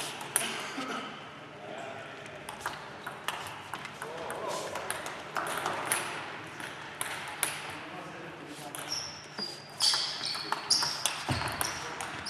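A table tennis ball clicks on a table.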